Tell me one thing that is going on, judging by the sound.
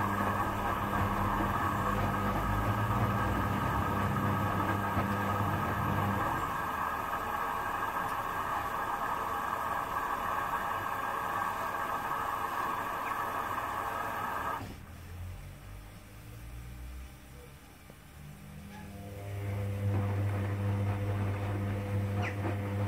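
A washing machine drum turns and hums steadily.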